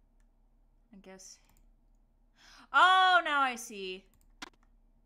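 A young woman speaks into a close microphone with an exclaiming, sing-song voice.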